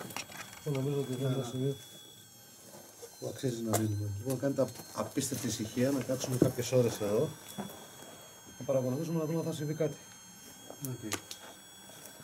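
A man speaks in a low voice, close by.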